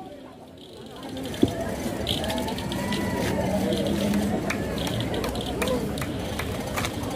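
A crowd of people chatters in the background outdoors.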